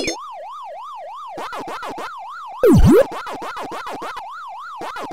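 An arcade game's electronic siren warbles up and down steadily.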